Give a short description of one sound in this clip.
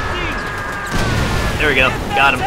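A large explosion bursts with a heavy roar.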